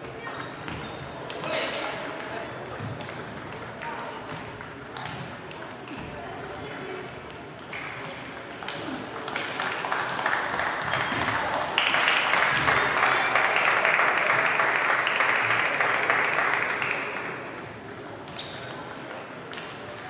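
A hubbub of voices fills the large echoing hall.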